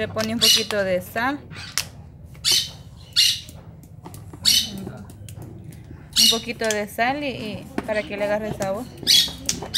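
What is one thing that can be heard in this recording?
A young girl talks and chatters nearby.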